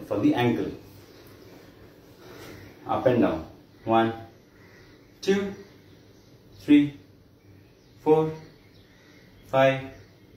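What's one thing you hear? A man counts out loud in short, clear bursts close by.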